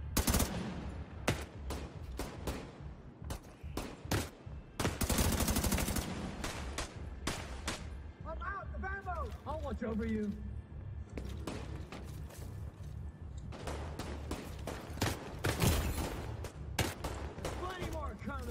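Rifle fire rattles in quick bursts.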